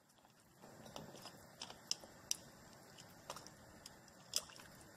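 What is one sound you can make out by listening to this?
Chopsticks tap and scrape as someone stirs a pot.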